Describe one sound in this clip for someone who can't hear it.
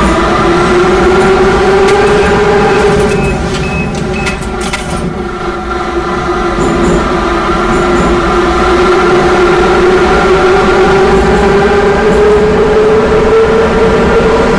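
A train's electric motors hum steadily, rising and falling in pitch.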